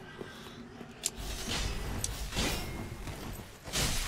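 A fiery blast bursts with a low roar.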